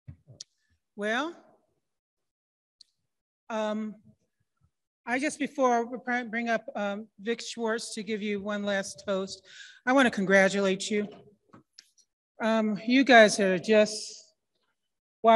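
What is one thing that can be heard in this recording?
A woman speaks with animation into a microphone, with pauses.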